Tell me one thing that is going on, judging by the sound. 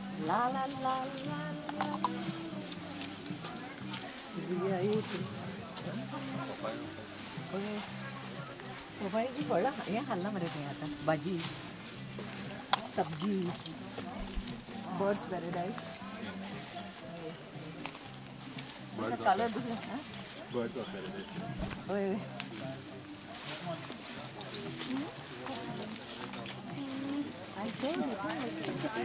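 Several adults talk casually nearby as they walk outdoors.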